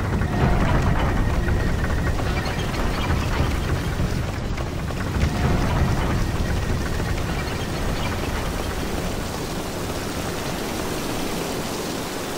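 Heavy footsteps clatter on wooden boards and stone.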